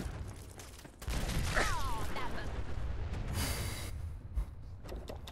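A loud explosion roars and rumbles.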